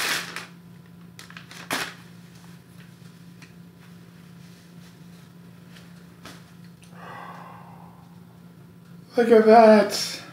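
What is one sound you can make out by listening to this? A shirt rustles as it is unfolded.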